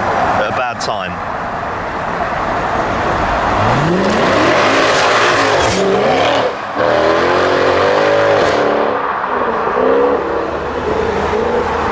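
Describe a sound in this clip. A sports car engine revs loudly and roars past close by.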